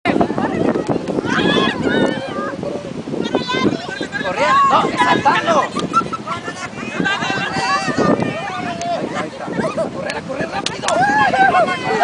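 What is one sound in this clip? A crowd of young men and women shout and cheer with excitement outdoors.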